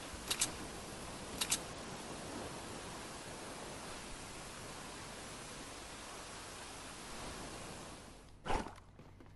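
Wind rushes past during a fast fall.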